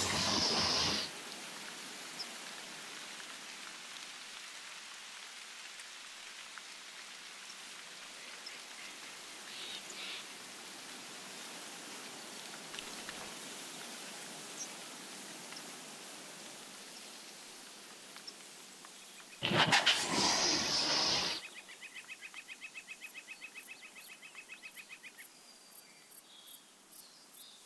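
Wind blows softly outdoors through trees.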